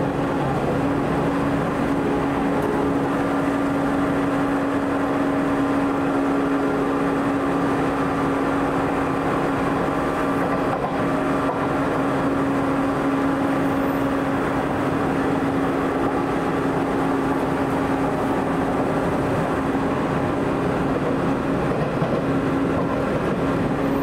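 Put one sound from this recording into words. A train rumbles steadily along the tracks, heard from inside with a low, constant hum.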